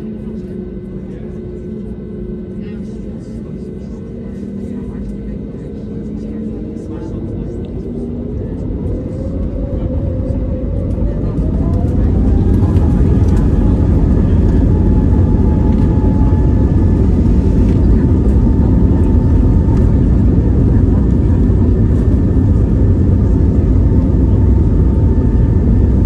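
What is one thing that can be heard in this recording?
Jet engines hum inside an airliner cabin, then rise in pitch and roar louder as the plane speeds up for takeoff.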